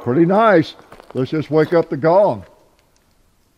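An older man speaks calmly and close into a microphone.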